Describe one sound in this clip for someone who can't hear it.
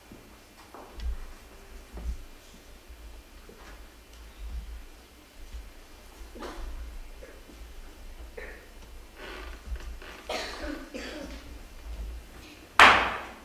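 Feet thud on a wooden stage floor.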